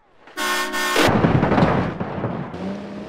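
A car crashes with a loud, crunching impact.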